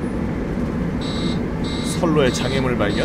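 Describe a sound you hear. A warning alarm beeps rapidly.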